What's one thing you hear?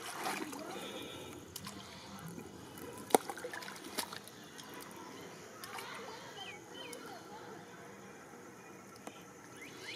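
Water splashes as hands grope in shallow mud.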